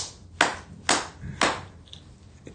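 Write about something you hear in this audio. A man claps his hands sharply.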